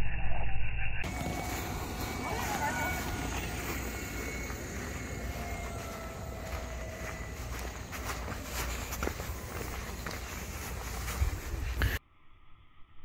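A golf cart's electric motor whirs as the cart rolls along a paved path.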